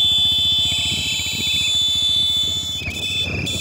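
A motorcycle engine putters past nearby.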